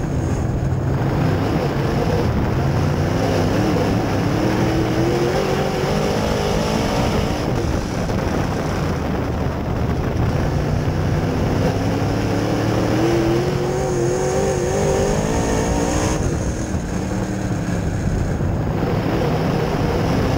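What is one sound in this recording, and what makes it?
Tyres rumble and rattle over a dirt track.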